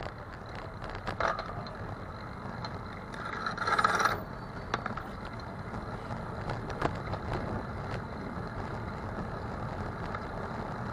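Tyres roll over a road surface.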